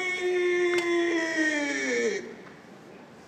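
A man chants a long, drawn-out call that falls in pitch.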